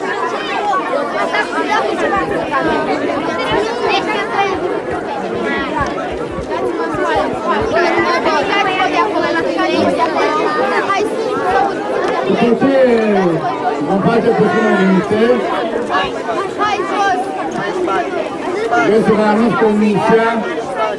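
A crowd of children chatters and shouts nearby outdoors.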